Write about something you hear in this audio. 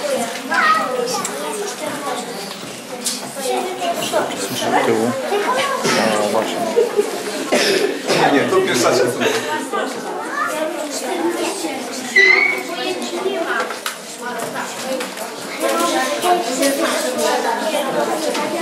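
Many children chatter in a lively murmur in an echoing hall.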